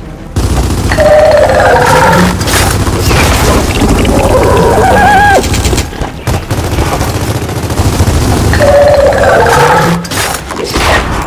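A creature shrieks harshly.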